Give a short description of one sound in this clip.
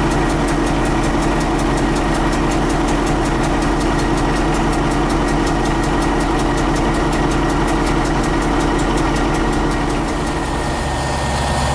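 A train rolls along rails, heard from inside a locomotive cab.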